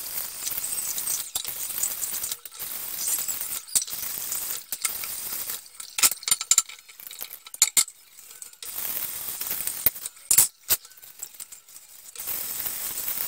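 Water runs from a tap in a steady hiss.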